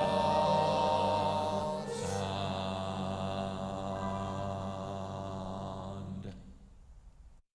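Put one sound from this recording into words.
A piano plays a sustained chord that slowly fades.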